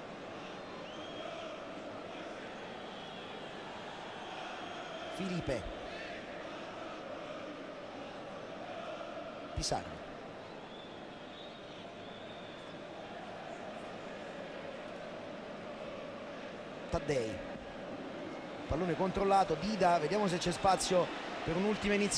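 A large stadium crowd murmurs and chants steadily in the open air.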